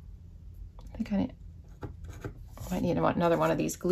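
A felt-tip marker scratches softly across paper.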